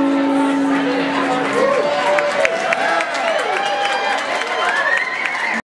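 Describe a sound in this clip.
An acoustic guitar strums.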